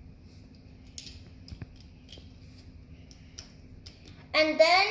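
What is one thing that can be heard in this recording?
Plastic toy bricks click together.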